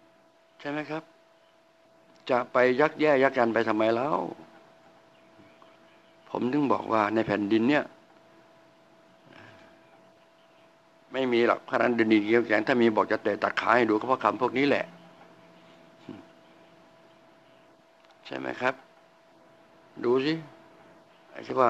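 An elderly man speaks calmly into a microphone close by, in short phrases with pauses.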